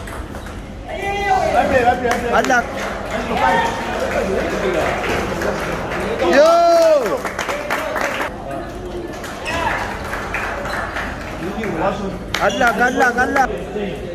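Spectators talk and call out loudly around a table tennis match.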